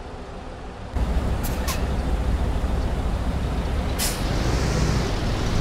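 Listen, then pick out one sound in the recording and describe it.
A bus engine roars louder as the bus pulls away.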